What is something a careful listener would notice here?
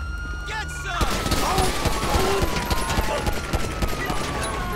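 A pistol fires a rapid string of shots.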